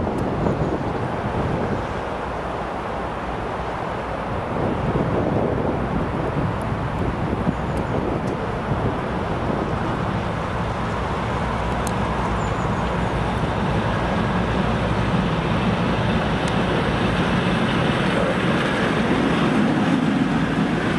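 An electric locomotive rumbles along the rails as it approaches and passes close by.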